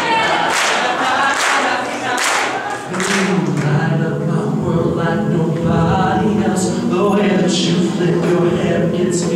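A group of young men sings a cappella in harmony.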